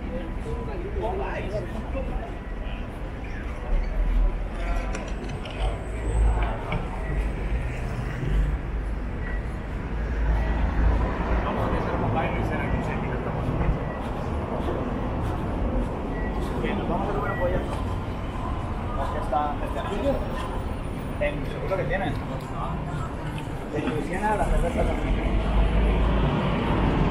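Men and women talk nearby in a busy street.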